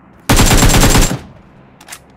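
A burst of rapid gunfire rings out.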